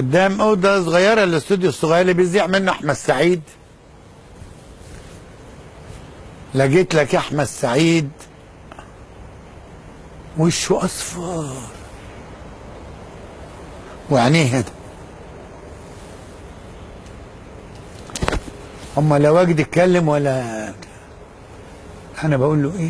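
An elderly man speaks with animation into a close microphone, in short bursts with pauses.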